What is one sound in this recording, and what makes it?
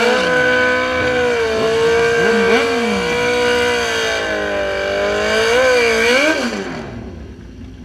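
A motorcycle engine roars loudly, revving up and down.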